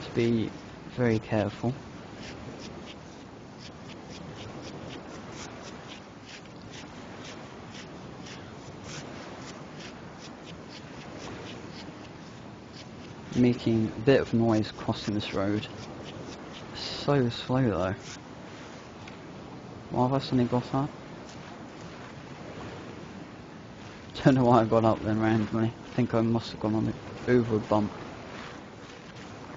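Footsteps shuffle softly over rough ground.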